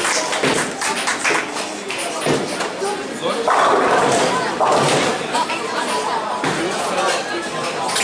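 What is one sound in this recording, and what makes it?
A ball thuds onto a lane.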